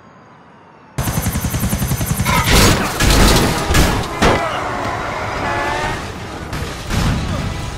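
A helicopter's rotor thumps loudly overhead.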